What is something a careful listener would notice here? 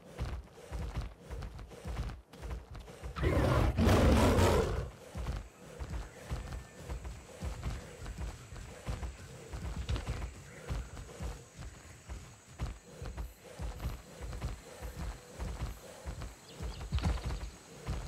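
Heavy footsteps thud steadily as a large creature runs.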